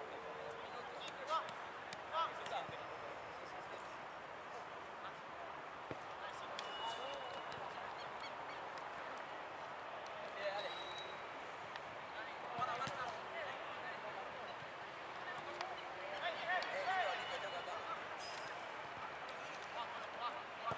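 Several young men chatter steadily outdoors.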